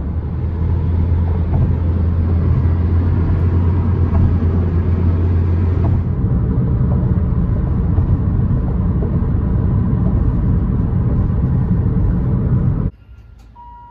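Car tyres roar steadily on the road from inside a moving car.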